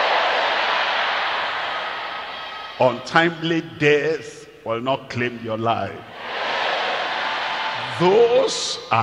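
A large crowd cheers and applauds in a big hall.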